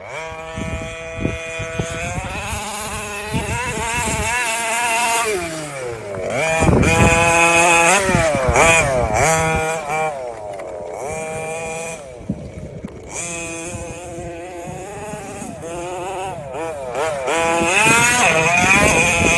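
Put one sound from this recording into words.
An electric toy car's motor whines loudly, rising and falling in pitch as it speeds up and slows down.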